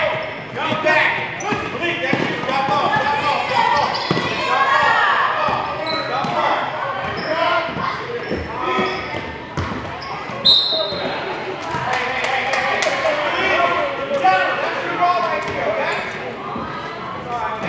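A crowd of people shouts and cheers in a large echoing hall.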